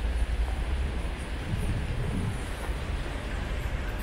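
A motor scooter passes nearby.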